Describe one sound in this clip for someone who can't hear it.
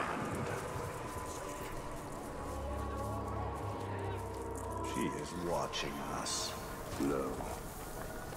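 Footsteps tread on grass and leaves.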